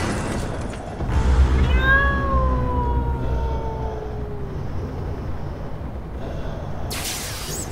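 A magical blast whooshes and rings.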